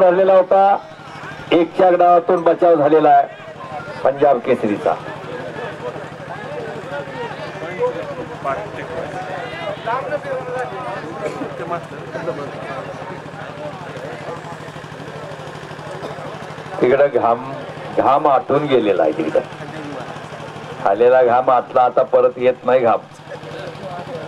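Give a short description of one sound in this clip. A man announces loudly over a loudspeaker in the open air.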